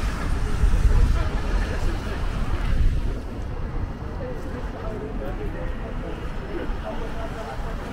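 Cars drive past on a street.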